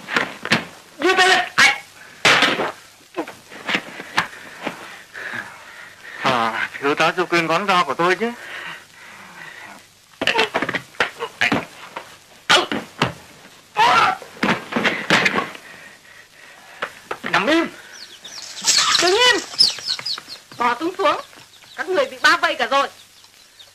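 Men grunt and shout while fighting.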